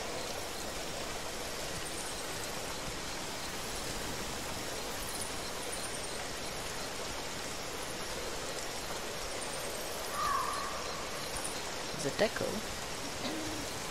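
A large animal's heavy footsteps thud softly on the forest floor.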